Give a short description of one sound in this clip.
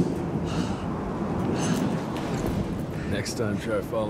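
Boots with spurs step heavily.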